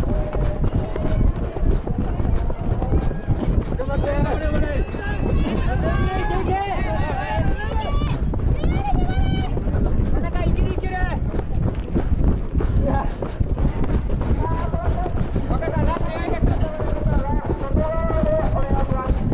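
Running footsteps pound steadily on a track.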